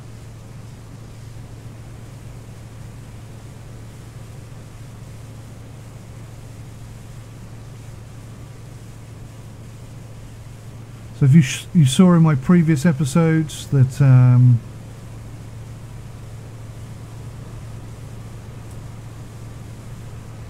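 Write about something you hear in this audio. A boat engine hums steadily on open water.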